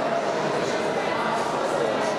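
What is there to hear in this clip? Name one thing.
A young woman speaks into a microphone, heard through loudspeakers.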